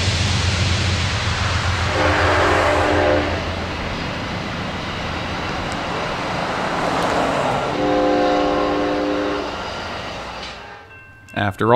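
Passenger railcars rumble and clatter past on the tracks.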